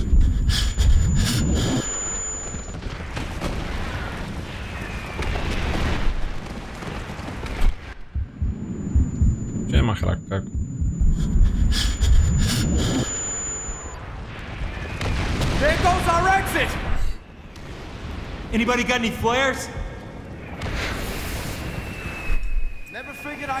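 A young man talks with animation into a close microphone.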